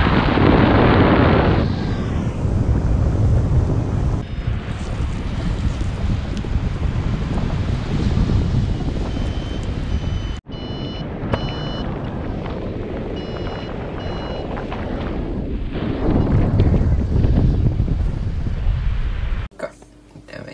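Strong wind roars past a paraglider in flight.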